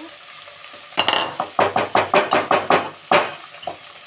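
A wooden spatula stirs and knocks against a metal pot.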